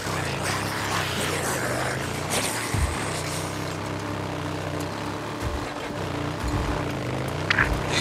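Tyres crunch over a dirt trail.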